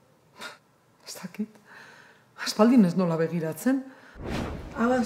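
An older woman speaks warmly close by.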